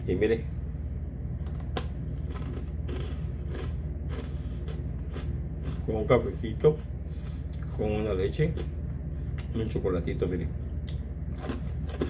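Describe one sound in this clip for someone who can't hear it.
A man crunches on a crisp snack.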